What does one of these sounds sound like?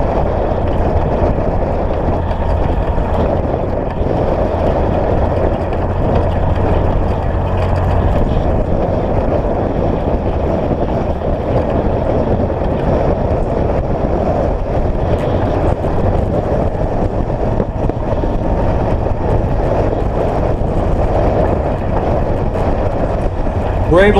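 A vehicle's engine drones steadily as it drives along a dirt road.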